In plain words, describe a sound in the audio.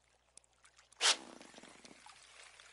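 Water splashes sharply as a fish strikes.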